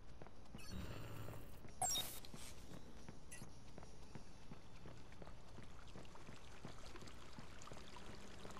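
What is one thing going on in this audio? Footsteps run quickly on hard pavement.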